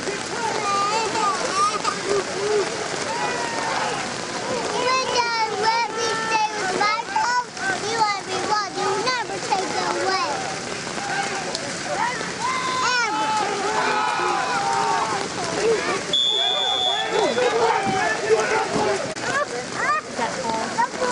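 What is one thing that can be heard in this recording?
A crowd of spectators shouts and cheers close by, outdoors.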